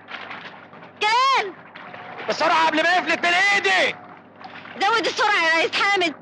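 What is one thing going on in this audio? A woman shouts loudly in distress.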